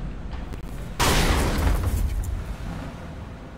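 A car tumbles and crashes with a loud bang.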